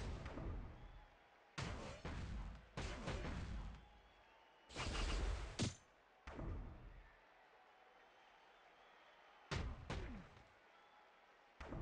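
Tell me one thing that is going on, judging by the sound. Heavy blows and slams thud and crash in short bursts.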